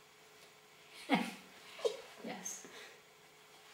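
An older woman laughs.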